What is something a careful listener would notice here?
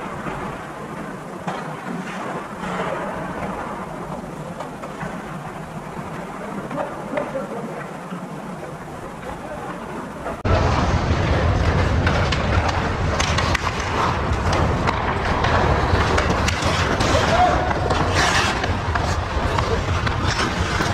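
Ice hockey skates scrape and carve on ice in an echoing indoor rink.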